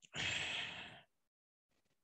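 A man breathes out heavily into a microphone.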